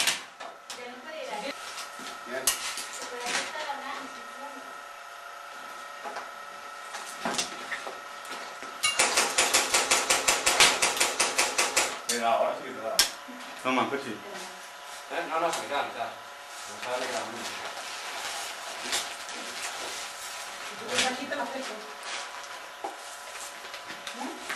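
A man talks in a low voice nearby.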